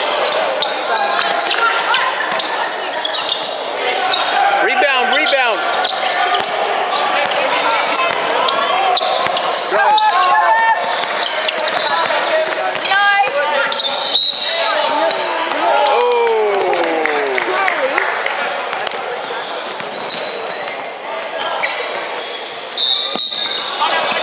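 Young players shout to each other during play.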